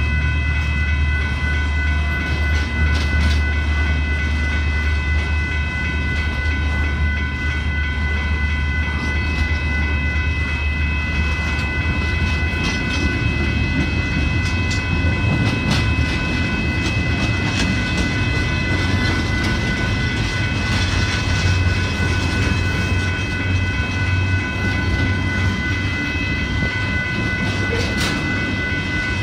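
Train wheels squeal and clank on the rails.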